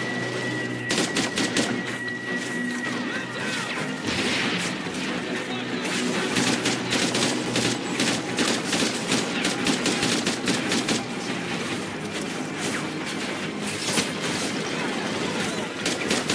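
Explosions boom and scatter debris.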